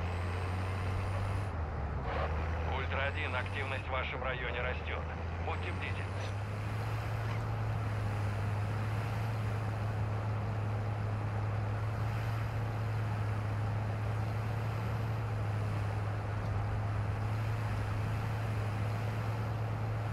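An armoured truck's engine rumbles steadily as it drives along.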